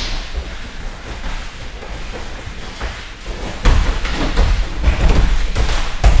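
Bare feet shuffle and thud on a padded mat.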